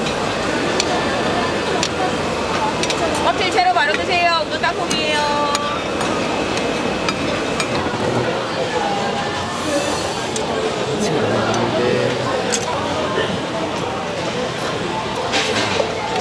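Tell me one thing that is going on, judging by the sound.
Metal tongs click and scrape against a griddle.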